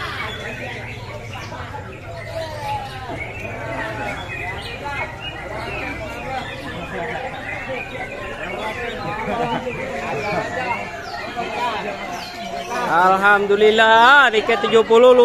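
A crowd of men chatter all around, close by, outdoors.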